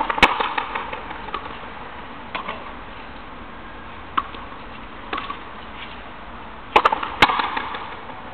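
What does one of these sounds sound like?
A ball smacks hard against a wall, echoing outdoors.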